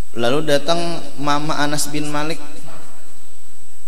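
A young man speaks calmly into a microphone, heard close.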